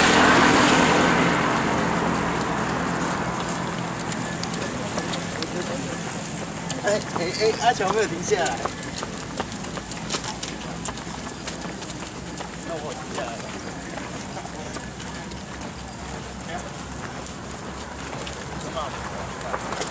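Footsteps of a group of walkers shuffle on a paved road.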